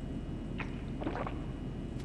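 A woman gulps a drink from a can.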